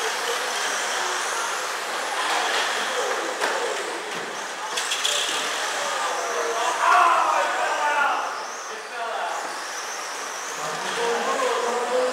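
Small electric model cars whine as they race around a track.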